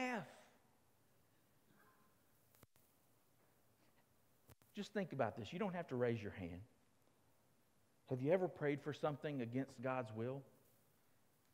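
A middle-aged man speaks calmly through a microphone in an echoing hall, with pauses.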